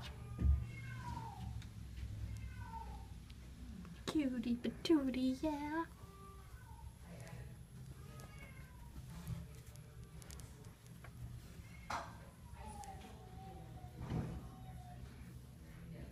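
A cat meows loudly several times up close.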